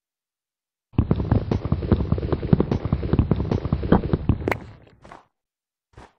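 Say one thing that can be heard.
Wood is chopped with rapid, crackling knocks.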